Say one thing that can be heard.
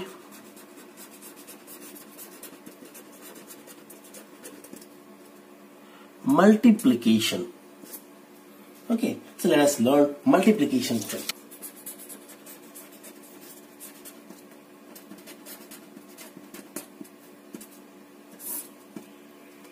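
A felt pen squeaks and scratches across paper.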